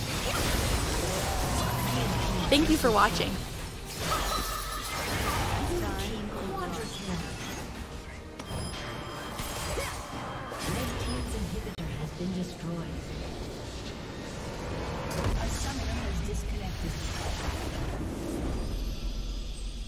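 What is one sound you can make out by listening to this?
Game spell effects crackle and boom in a fast fight.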